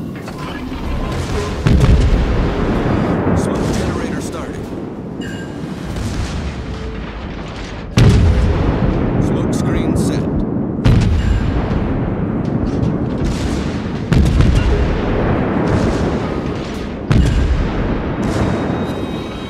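Shells explode against a burning warship.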